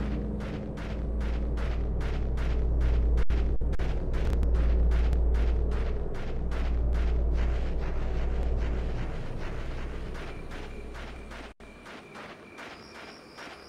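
Footsteps crunch quickly on a gravel path.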